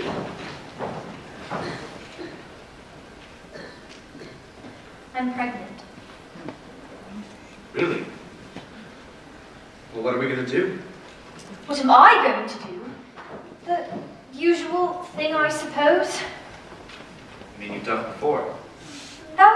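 A woman speaks with feeling on a stage, heard from afar in a large hall.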